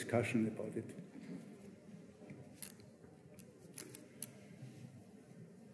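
A middle-aged man speaks calmly through a microphone in an echoing hall.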